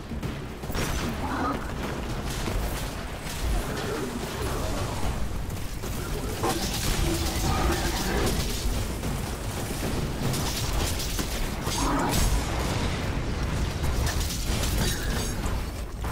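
Gunfire and explosions boom in quick succession.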